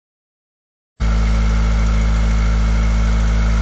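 An air compressor engine runs close by with a loud, steady drone.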